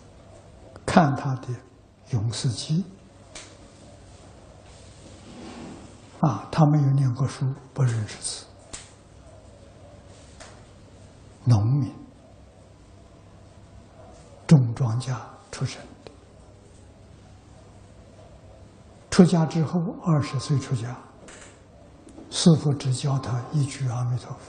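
An elderly man speaks slowly into a clip-on microphone, in short phrases with long pauses.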